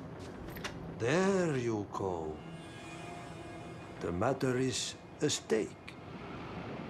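A man speaks slowly and strangely, with a drawn-out, wavering voice.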